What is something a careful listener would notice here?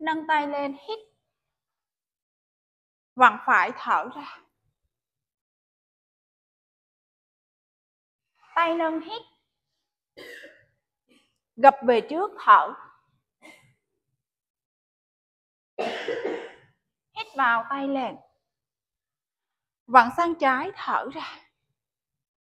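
A woman calls out instructions in short bursts, with pauses between them.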